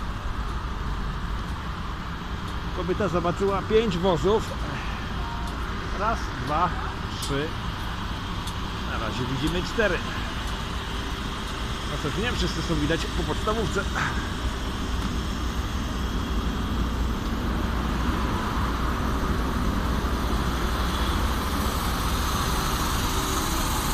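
A fire engine's motor rumbles steadily close by.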